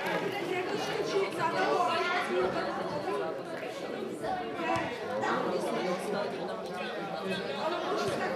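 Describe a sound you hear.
Spectators chatter nearby outdoors.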